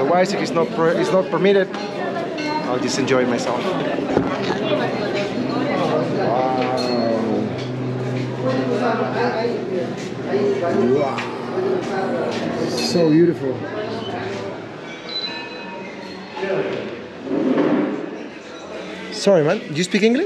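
A young man talks calmly and close to the microphone.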